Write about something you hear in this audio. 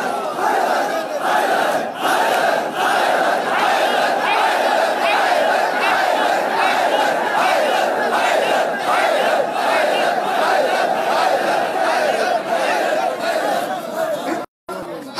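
A large crowd chants along loudly in a large echoing hall.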